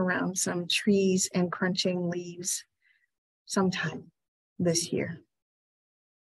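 A middle-aged woman speaks calmly into a microphone, pausing between phrases.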